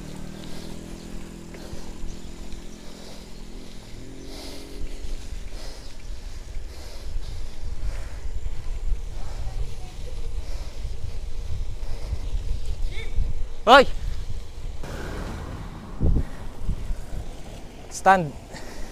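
Bicycle tyres roll and hiss over a wet road.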